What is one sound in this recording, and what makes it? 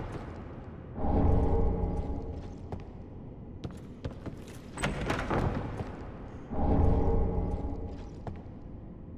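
A bright magical chime rings out.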